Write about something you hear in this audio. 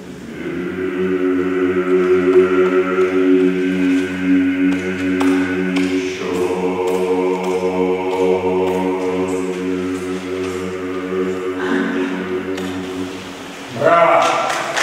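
A male choir sings in harmony in a large echoing hall.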